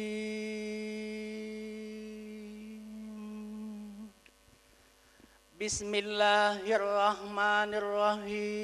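A man chants in long, drawn-out notes through a microphone and loudspeakers, with a short pause in the middle.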